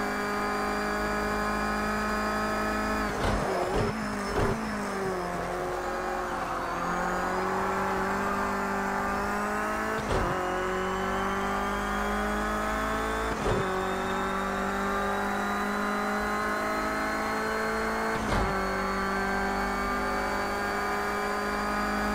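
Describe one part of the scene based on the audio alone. A racing car engine roars, dropping in pitch when braking and rising as it accelerates.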